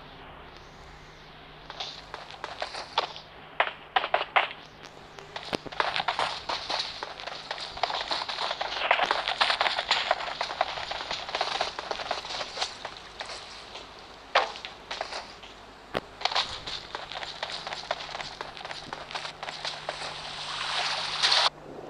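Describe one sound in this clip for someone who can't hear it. Footsteps run quickly over hard ground and grass.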